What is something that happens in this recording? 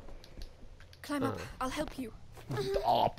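A young woman grunts with effort.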